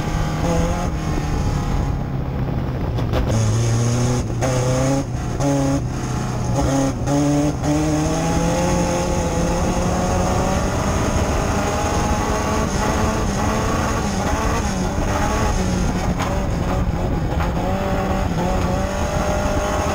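The car's body rattles and vibrates over the rough dirt track.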